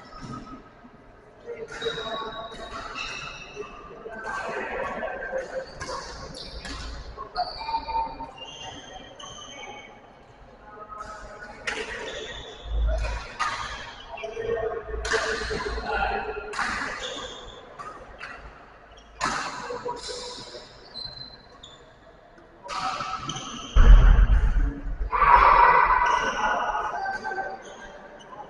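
Voices of men echo around a large hall.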